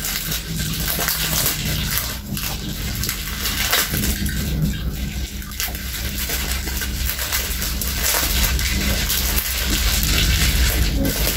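A young woman chews and slurps food noisily, close by.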